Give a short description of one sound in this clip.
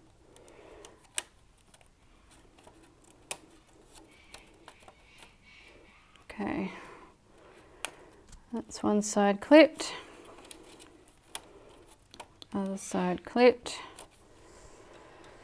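Small clicks and taps sound as fingers work at a knitting machine.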